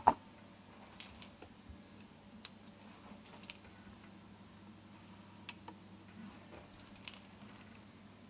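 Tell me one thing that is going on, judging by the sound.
Fingers click buttons and slide faders on a mixer with soft clicks.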